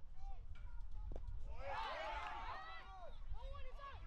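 An aluminum bat cracks against a baseball.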